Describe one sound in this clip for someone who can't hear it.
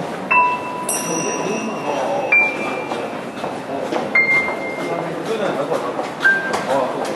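Cymbals and drums are struck in a lively beat.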